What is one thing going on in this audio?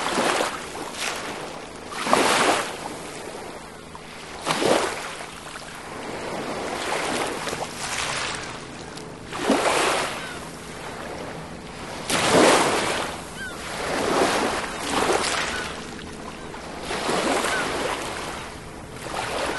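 Small waves wash and break gently onto a pebbly shore, again and again.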